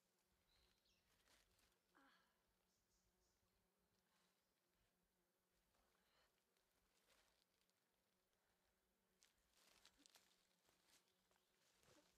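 Leaves and branches rustle and snap as a person pushes through dense undergrowth.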